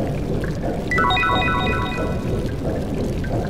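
A short bright chime rings out.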